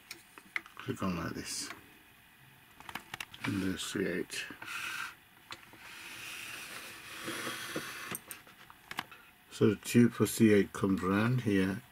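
Plastic parts click and knock as a hand moves a toy arm.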